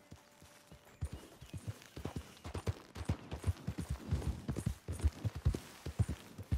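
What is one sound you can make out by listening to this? Horse hooves thud quickly on soft ground at a gallop.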